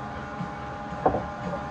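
A spoon clinks against a ceramic bowl.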